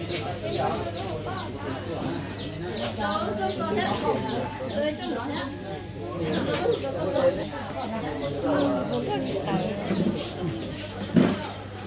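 A young man sings into a microphone through loudspeakers.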